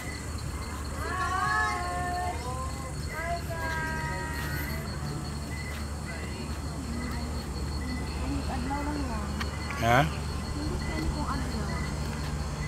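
A young woman speaks nearby in short, animated phrases.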